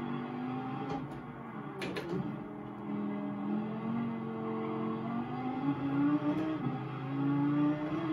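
A racing car engine roars and shifts pitch as it speeds around a track.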